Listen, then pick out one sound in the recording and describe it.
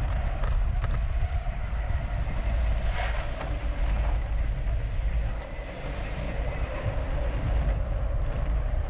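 Wind rumbles steadily against a microphone outdoors.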